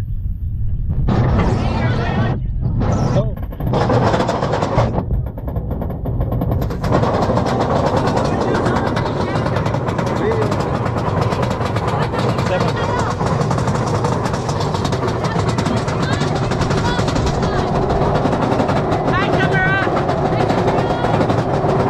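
A roller coaster rumbles and rattles along its track.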